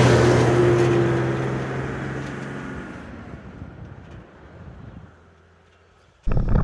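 An off-road vehicle engine rumbles as the vehicle drives away and fades.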